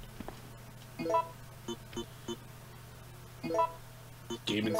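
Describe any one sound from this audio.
Short electronic beeps sound as menu options are picked.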